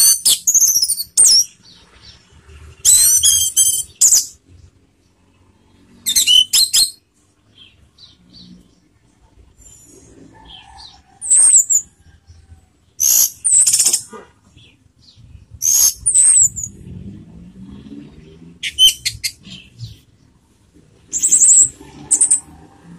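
A caged songbird sings loud, shrill bursts of chirps and trills with pauses between them.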